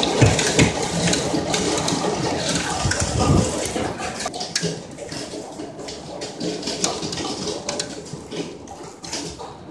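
Hail clatters and rattles down hard outdoors.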